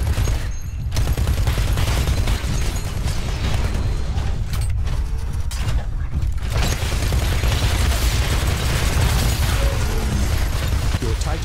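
A heavy machine gun fires rapid bursts.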